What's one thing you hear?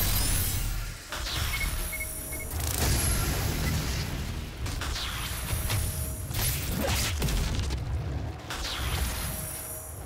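A heavy gun fires loud blasts.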